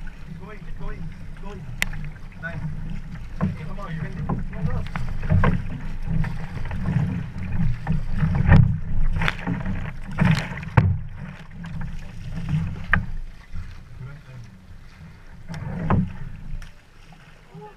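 A paddle splashes and churns the water close by.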